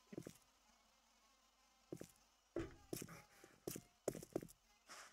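Footsteps thud on hard pavement.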